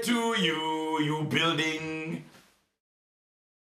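A man speaks cheerfully, close up.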